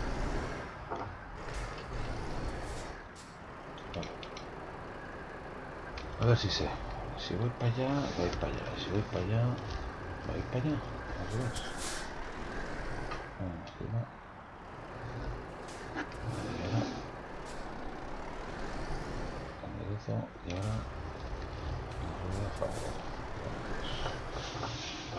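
A truck engine rumbles low and steadily.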